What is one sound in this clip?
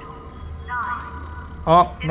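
A gun is drawn with a metallic clack.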